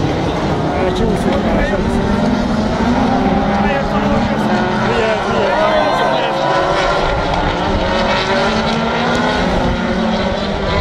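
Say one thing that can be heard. Racing car engines roar and whine as a pack of cars speeds past.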